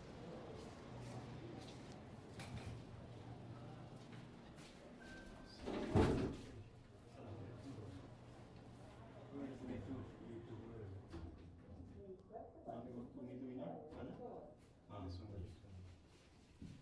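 A lift hums steadily as it moves.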